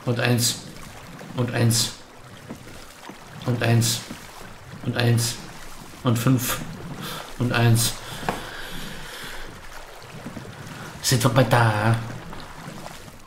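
Oars splash and creak in the water with steady, regular strokes.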